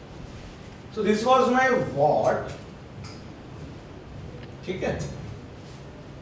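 A man speaks calmly, as if teaching.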